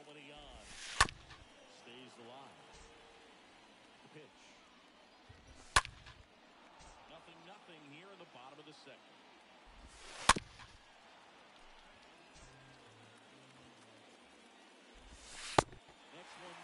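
A baseball smacks sharply into a catcher's mitt.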